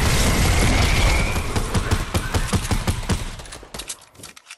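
A burst of rapid gunfire rings out.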